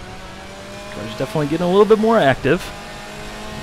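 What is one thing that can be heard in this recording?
A race car engine revs up and down sharply through gear changes.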